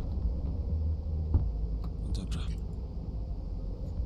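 A car door opens with a click.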